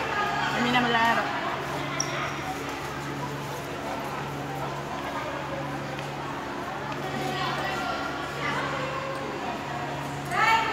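Young women talk and call out with animation in a large echoing hall.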